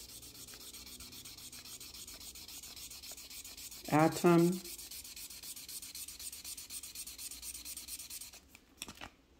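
A felt-tip marker scribbles rapidly across paper.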